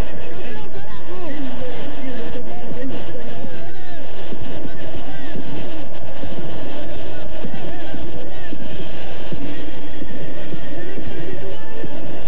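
A young man shouts and cheers excitedly close by.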